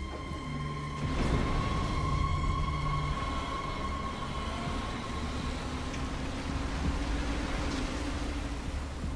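A large truck engine rumbles as the truck drives by.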